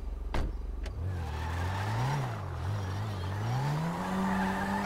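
A car engine starts and revs, rising and falling in pitch.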